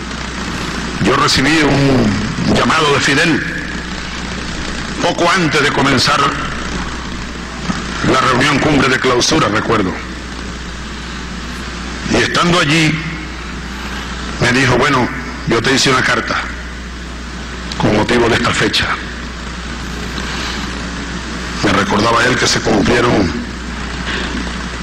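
A man speaks slowly through a microphone in a large hall, pausing between phrases.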